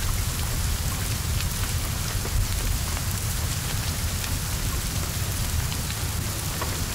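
Flames roar and crackle from a burning car.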